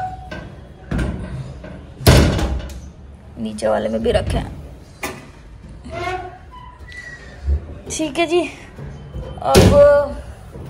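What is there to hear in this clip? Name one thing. Wooden cabinet doors knock and bang as they open and shut.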